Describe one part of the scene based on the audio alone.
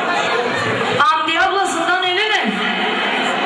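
A young woman calls out loudly through a microphone and loudspeaker.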